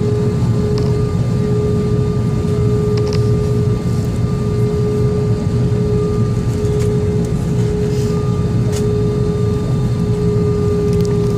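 Jet engines hum steadily, heard from inside an aircraft cabin.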